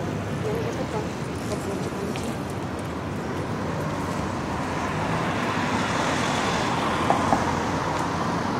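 Traffic hums steadily outdoors along a busy street.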